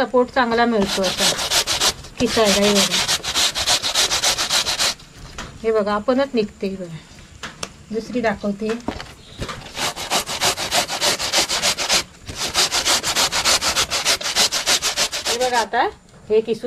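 A grater rasps rapidly against a vegetable.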